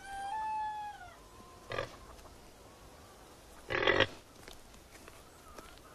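A pig grunts nearby.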